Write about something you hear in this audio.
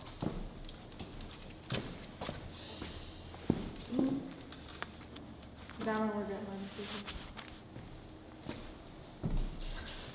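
A young woman speaks and laughs.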